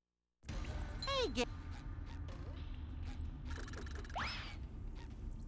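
Cartoon sound effects from a video game play.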